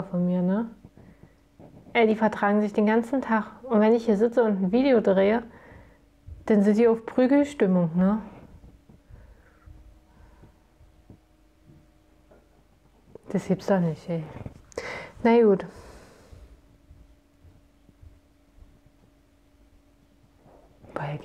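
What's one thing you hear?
A young woman talks calmly and close to a microphone, pausing now and then.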